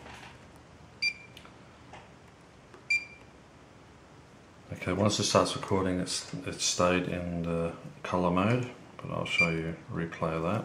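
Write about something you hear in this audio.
An electronic device beeps as its buttons are pressed.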